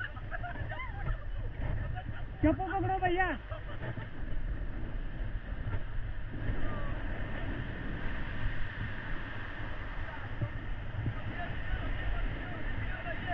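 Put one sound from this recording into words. Whitewater rapids rush and roar close by.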